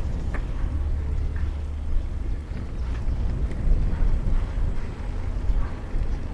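Wind blows steadily and gustily outdoors.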